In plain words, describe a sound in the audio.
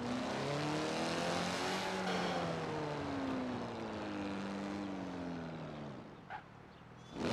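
A sports car engine drones and slowly winds down.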